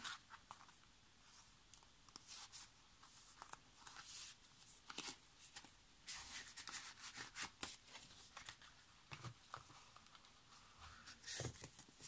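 A plastic sleeve crinkles as it is handled.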